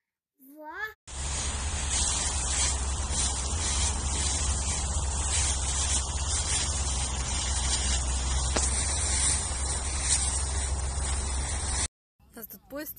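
Dry leaves rustle and crunch as small children stomp through them outdoors.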